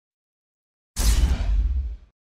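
A video game's menu closes with a deep whoosh.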